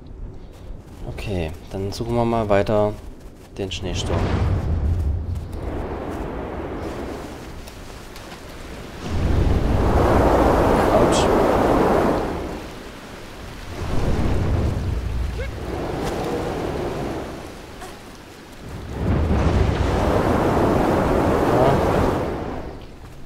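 Wind howls across open snow in strong, rising and falling gusts.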